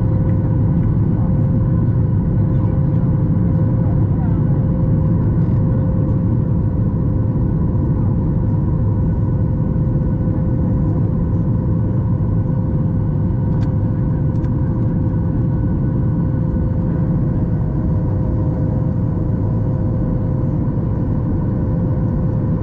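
Jet engines roar steadily inside an airplane cabin in flight.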